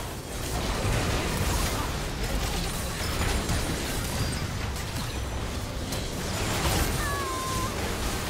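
Spell effects crackle and blast in quick bursts.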